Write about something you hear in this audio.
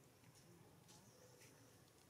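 A monkey rustles the twigs of a branch.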